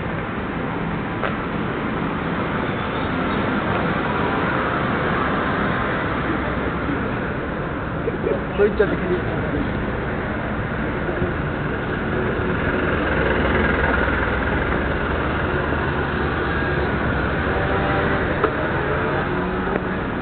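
Footsteps shuffle on pavement close by.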